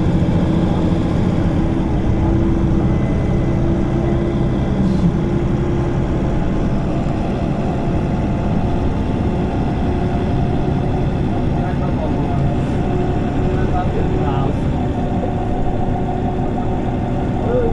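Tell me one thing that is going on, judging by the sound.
A bus engine idles with a steady low rumble nearby.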